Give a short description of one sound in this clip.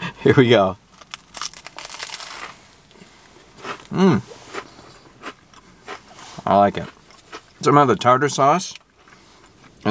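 A man chews food with his mouth close by.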